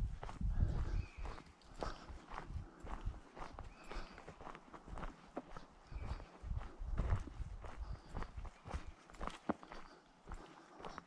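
Footsteps crunch on dry leaves and dirt along a path.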